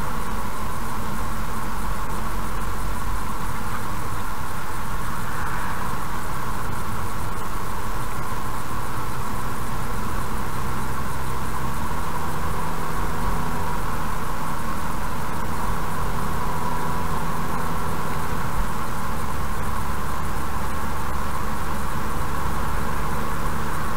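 A car engine hums steadily as the car drives along.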